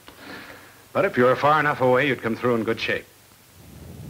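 A man speaks calmly and clearly in an old, slightly hissy recording.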